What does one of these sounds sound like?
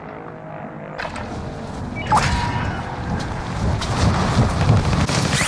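Wind rushes past during a fall through the air.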